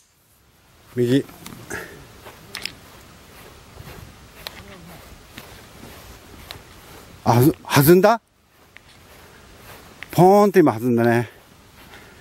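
A man speaks nearby with animation.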